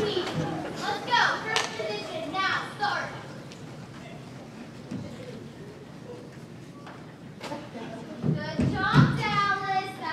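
Young women on stage speak and call out loudly in an echoing hall.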